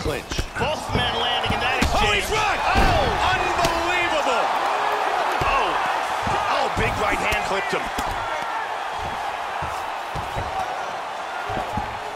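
A crowd roars and cheers loudly.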